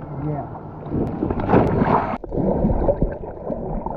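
Water splashes loudly as a diver rolls backward into the sea.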